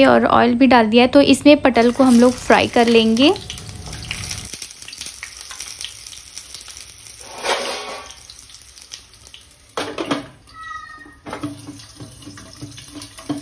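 Oil sizzles in a hot pan.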